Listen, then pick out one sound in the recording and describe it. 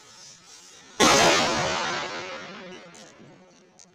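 A firecracker explodes with a loud bang that echoes off walls.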